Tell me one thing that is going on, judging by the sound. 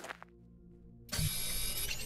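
A mining tool hums as its beam collects a rock.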